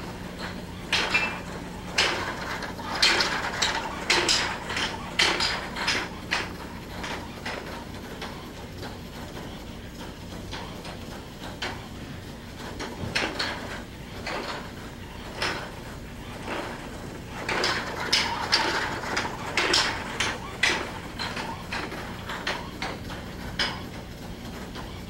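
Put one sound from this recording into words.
A legged robot hops and thumps on a hard floor.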